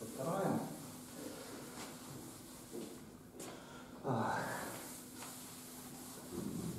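A cloth wipes across a chalkboard with a soft rubbing.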